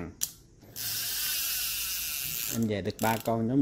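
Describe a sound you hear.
A fishing reel's spool whirs as it spins.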